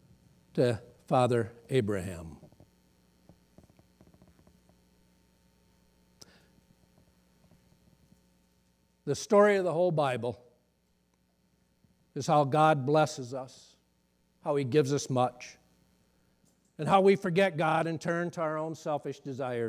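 A middle-aged man speaks calmly through a microphone, with pauses between phrases.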